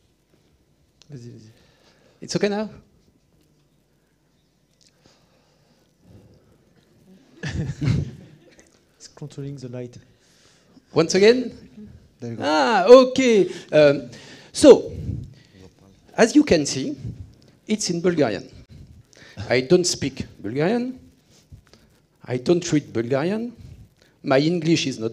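A man speaks calmly to an audience through a microphone.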